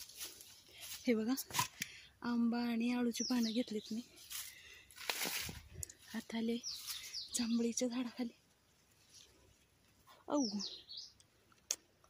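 A woman talks animatedly close by.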